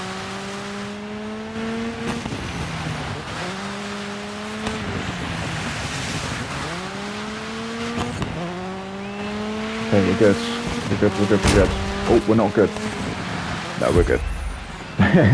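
A rally car engine roars and revs up and down as it shifts gears.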